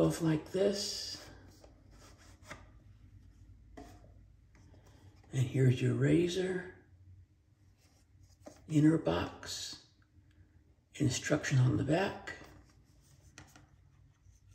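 A middle-aged man talks calmly and close by, pausing between phrases.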